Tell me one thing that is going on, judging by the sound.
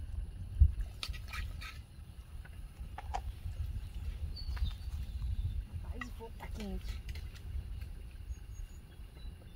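A metal spoon clinks and scrapes in a pot.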